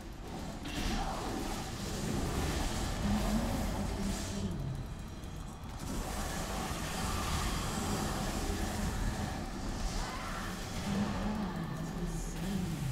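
Magic spells blast and crackle in a fast fight.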